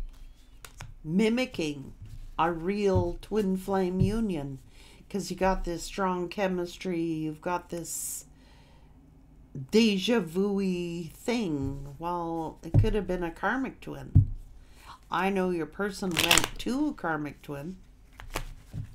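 A woman talks calmly and warmly into a close microphone.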